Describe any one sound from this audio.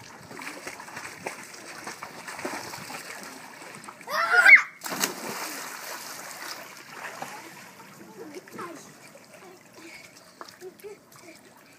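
Water splashes and sloshes as children swim.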